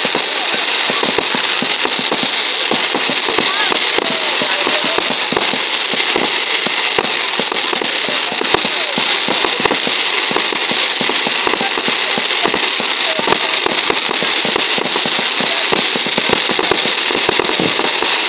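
Firework sparks crackle and pop rapidly.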